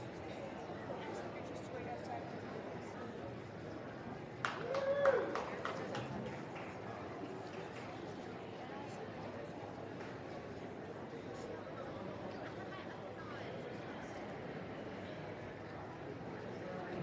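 A crowd murmurs steadily in a large hall.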